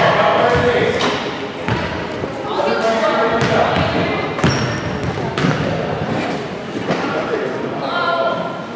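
Young players' voices call out and chatter in a large echoing gym.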